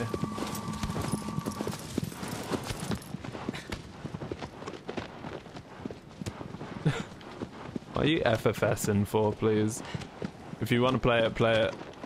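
Hooves gallop steadily over open ground.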